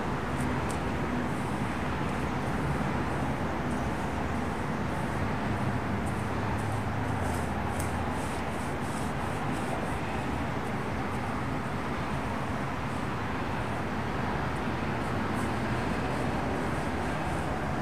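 A paintbrush swishes softly against a low step.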